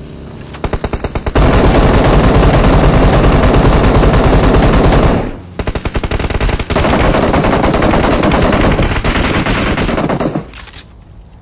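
A vehicle engine roars loudly as it drives along.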